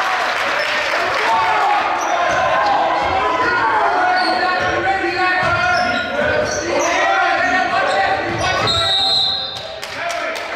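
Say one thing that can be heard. Young men shout and cheer in an echoing gym.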